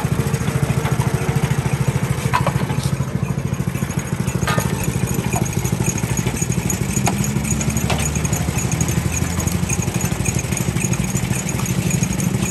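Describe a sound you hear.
A machine motor rumbles and thumps steadily close by.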